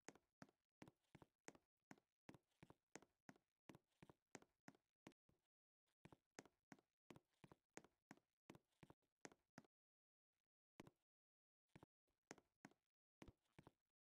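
Footsteps tap quickly and steadily on a hard surface.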